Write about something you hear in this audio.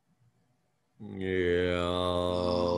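An elderly man sings a long, steady note close by.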